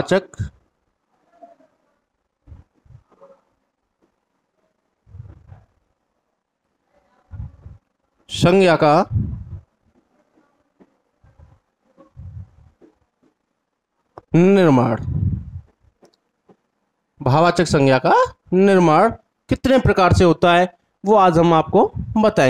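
A man speaks clearly and slowly into a nearby microphone, pausing often.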